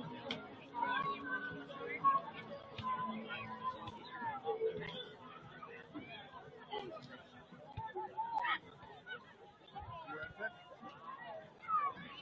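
Young players shout and call to each other across an open outdoor field.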